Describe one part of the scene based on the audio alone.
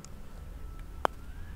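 A putter taps a golf ball with a sharp click.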